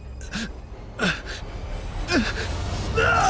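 A man cries out in pain.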